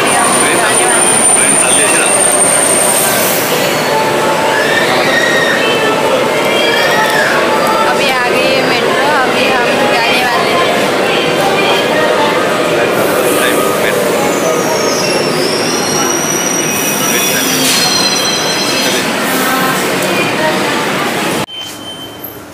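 A crowd murmurs in a busy, echoing hall.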